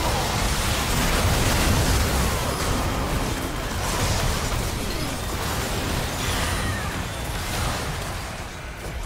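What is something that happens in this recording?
Magic blasts boom and burst in quick succession.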